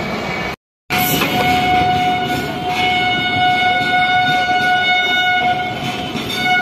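A train's wheels squeal on the rails.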